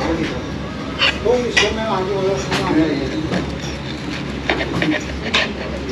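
A knife and fork clink and scrape on a ceramic plate.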